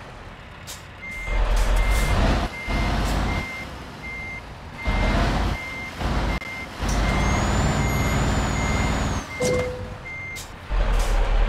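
A truck's reversing alarm beeps at a steady pace.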